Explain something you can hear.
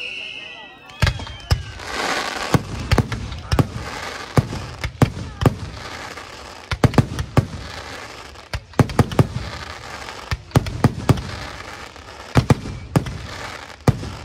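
Firework fountains hiss and crackle steadily.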